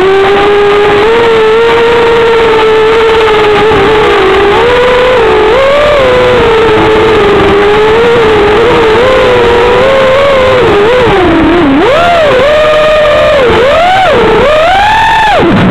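Drone motors whine loudly, rising and falling in pitch as the drone speeds up and slows down.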